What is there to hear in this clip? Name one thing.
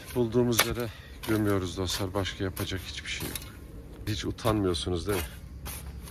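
A shovel scrapes and chops into dry soil.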